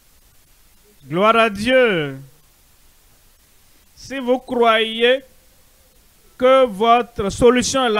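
An elderly man preaches loudly and with fervour through a microphone, in short bursts.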